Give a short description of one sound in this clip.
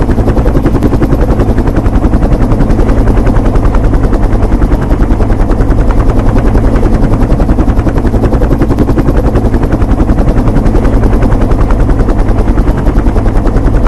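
Helicopter rotor blades thump rapidly and steadily overhead.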